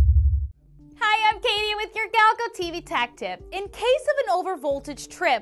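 A young woman speaks brightly and clearly into a microphone.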